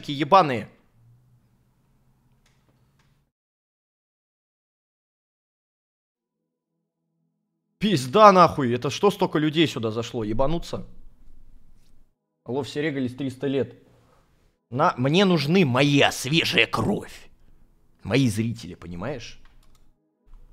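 A young man speaks with animation into a close microphone, in bursts with pauses.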